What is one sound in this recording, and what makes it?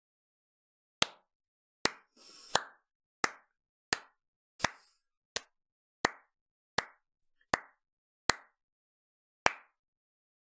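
A man claps his hands slowly, one clap at a time.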